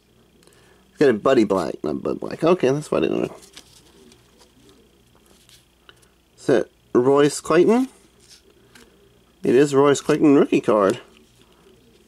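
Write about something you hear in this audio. Stiff paper cards rustle and slide against each other in hands.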